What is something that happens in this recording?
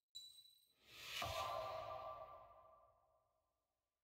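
A short bright chime rings out and fades.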